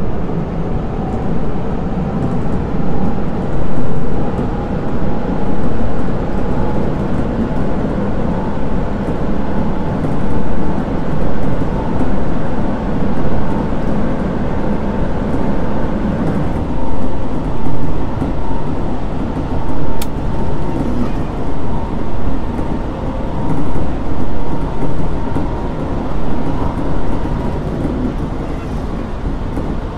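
A train rumbles steadily along the tracks, its wheels clattering over rail joints.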